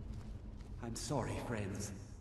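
A man's ghostly voice cries out mournfully nearby.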